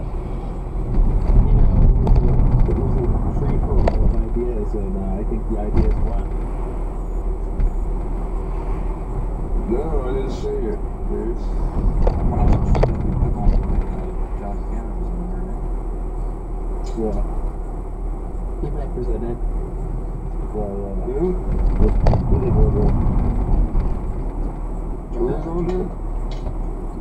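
A car drives steadily along a city street, its engine humming low.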